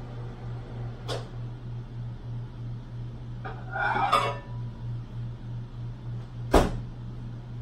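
A microwave door clunks open and shut.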